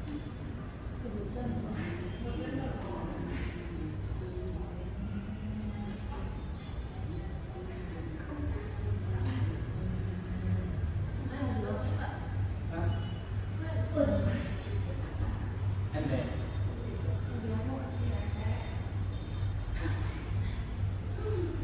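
A woman calmly gives instructions across a large, echoing room.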